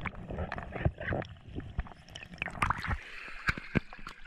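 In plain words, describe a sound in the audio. Water splashes and sloshes nearby.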